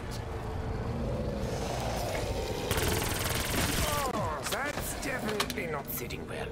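Zombies growl and moan close by.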